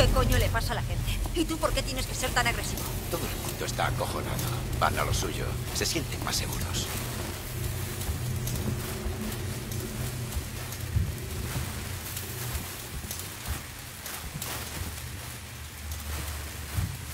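A flare hisses and crackles steadily.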